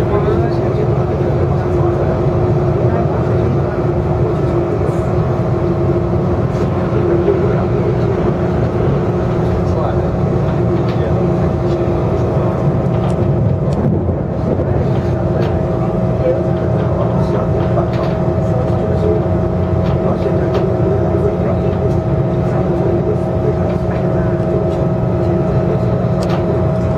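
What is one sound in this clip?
Wheels click and rattle over rail joints.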